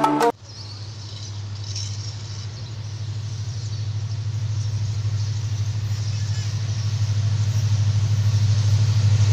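A diesel locomotive engine rumbles with a low, throbbing drone, growing steadily louder as it approaches.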